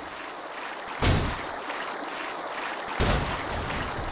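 A robot lands with a loud thud.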